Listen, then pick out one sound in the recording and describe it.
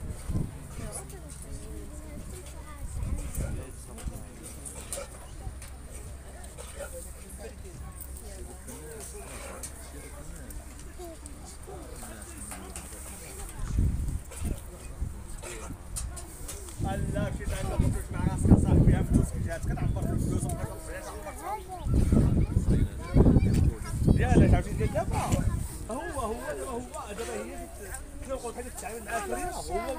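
Sheep munch on straw and hay.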